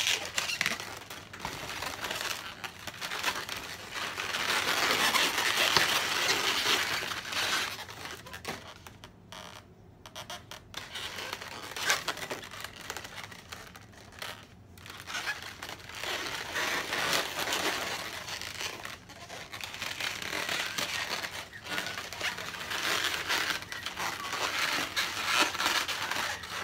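Balloons squeak and rub against each other.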